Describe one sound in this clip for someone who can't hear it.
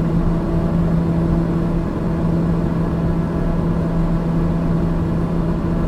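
An aircraft engine drones steadily from inside the cockpit.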